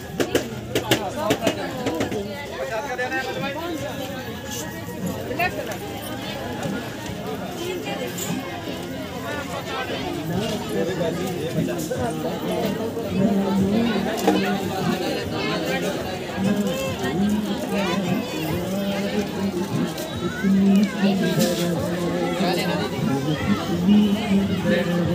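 A crowd of people chatter all around.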